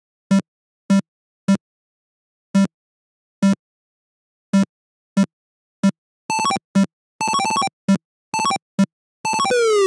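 A computer game's PC speaker beeps short square-wave blips as a figure hops.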